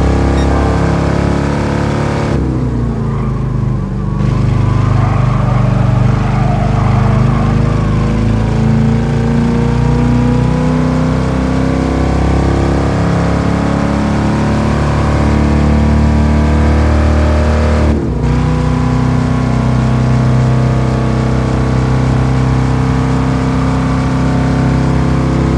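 A powerful car engine roars at high revs, dropping briefly as it shifts gears.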